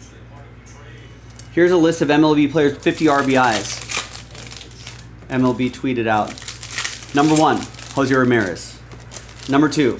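Foil card packs crinkle as they are handled.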